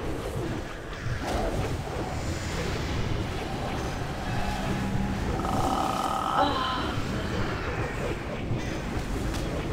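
Spell effects and combat sounds clash and crackle in a game battle.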